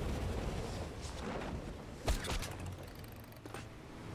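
A body lands with a thud on hard ground.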